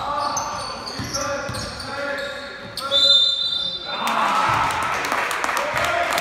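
A basketball thumps on the floor as it is dribbled.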